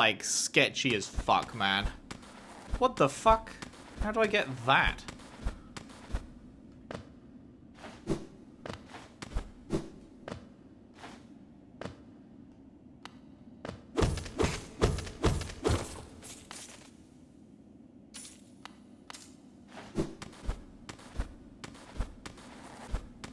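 Light footsteps patter quickly.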